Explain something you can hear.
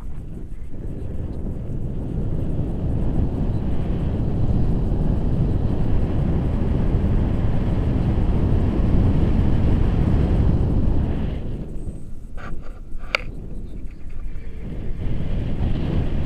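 Wind rushes loudly and roars across a microphone.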